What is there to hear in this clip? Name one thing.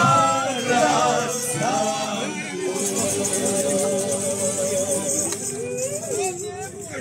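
A small folk band plays accordion, guitar and fiddle outdoors.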